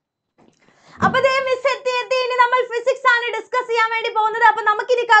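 A young woman speaks loudly and with animation close to a microphone.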